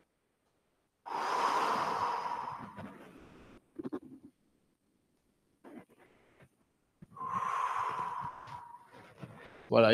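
A wooden staff whooshes through the air.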